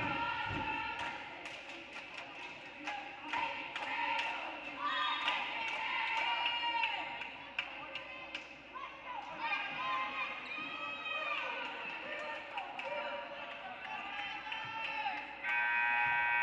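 Spectators chatter and call out in an echoing gym.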